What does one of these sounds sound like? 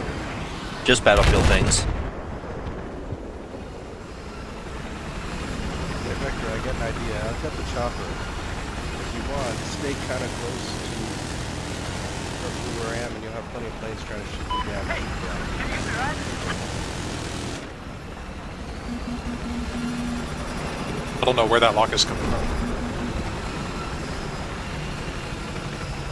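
A helicopter's rotor thumps and whirs steadily.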